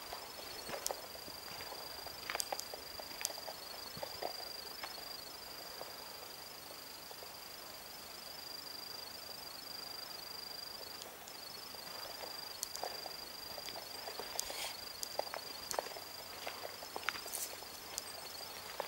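Footsteps crunch on a dry forest path.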